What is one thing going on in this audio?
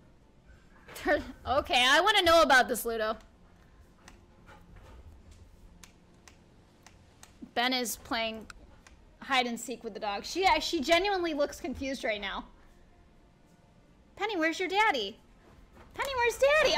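A young woman speaks with animation into a close microphone, in bursts with pauses.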